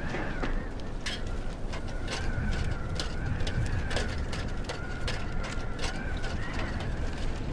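Hands knock on metal ladder rungs while climbing.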